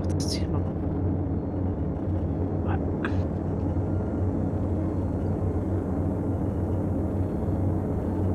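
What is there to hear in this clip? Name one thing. A spacecraft engine hums low and steady.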